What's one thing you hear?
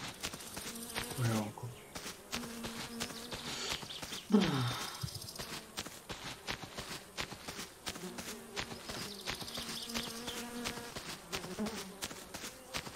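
A man talks into a microphone now and then, close up.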